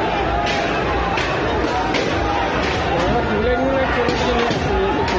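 A crowd of men shouts and yells outdoors at a distance.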